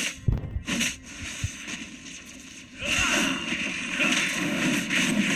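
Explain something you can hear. Video game magic blasts and hits crackle and boom in quick succession.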